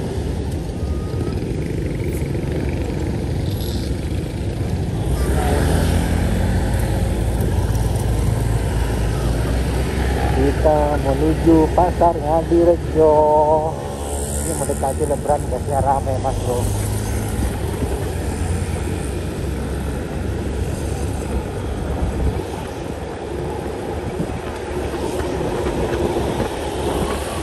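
A motorcycle engine hums steadily up close as it rides along.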